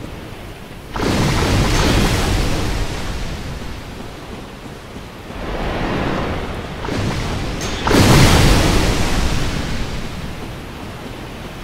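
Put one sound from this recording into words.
Thunder crashes and rumbles.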